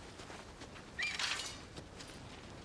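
A horse neighs nearby.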